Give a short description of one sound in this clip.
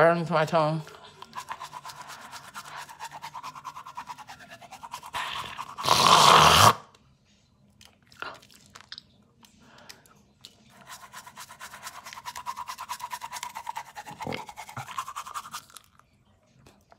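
A toothbrush scrubs a tongue with a fast wet rasping.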